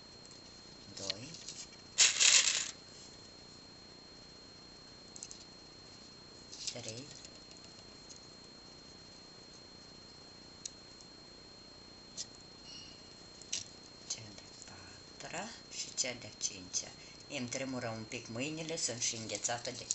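Small plastic beads click softly against each other.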